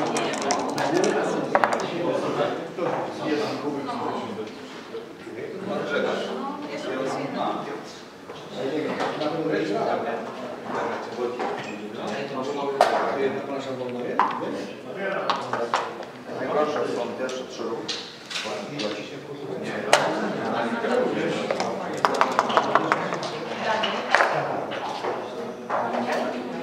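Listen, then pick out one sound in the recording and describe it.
Dice clatter onto a wooden board.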